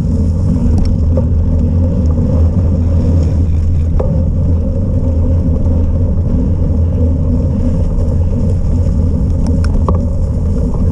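Bicycle tyres roll steadily over a muddy, snowy trail.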